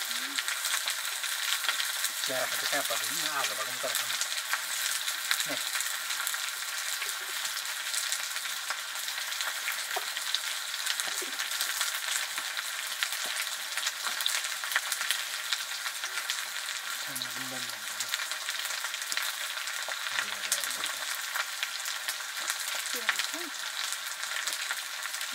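A wood fire crackles and pops.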